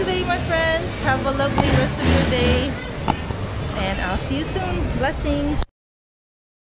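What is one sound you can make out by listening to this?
A woman talks cheerfully and close up, outdoors.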